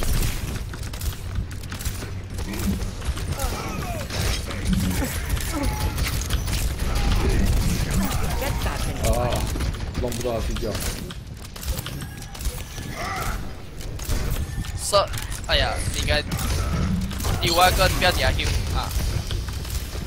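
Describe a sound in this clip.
A game rifle fires rapid energy shots.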